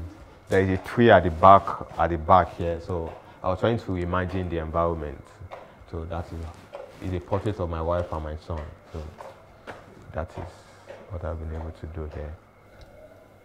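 A young man speaks calmly, close to a microphone.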